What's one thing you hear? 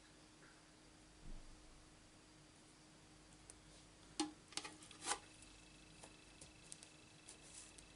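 Hands slide paper across a table.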